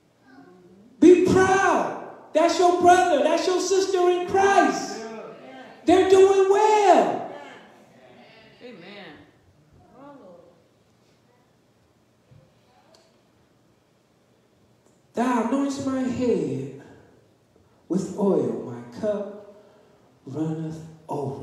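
An elderly man speaks into a microphone with feeling, in long drawn-out phrases, in a large echoing hall.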